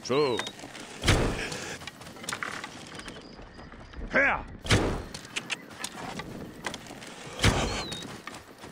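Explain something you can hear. A bow is shot with a sharp twang and whoosh.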